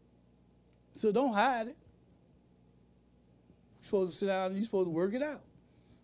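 A man speaks slowly and with emphasis into a microphone, in a preaching manner.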